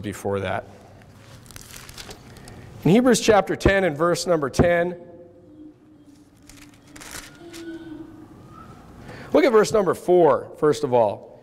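A man speaks steadily into a microphone, pausing between phrases.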